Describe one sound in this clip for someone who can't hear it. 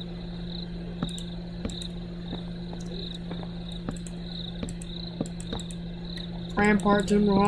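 Wooden blocks are placed one after another with soft, dull knocks.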